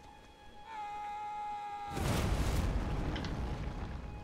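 A heavy hammer swings and strikes with a whooshing blast.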